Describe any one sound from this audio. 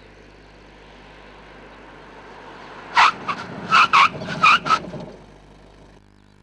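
A car drives toward the listener.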